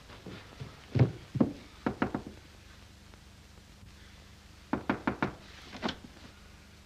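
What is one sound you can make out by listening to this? A man knocks on a wooden door.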